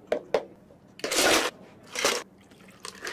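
Ice cubes rattle and clatter into a plastic cup.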